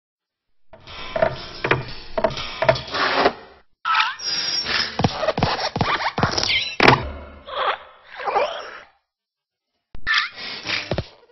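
A metal lamp creaks and squeaks as it bends.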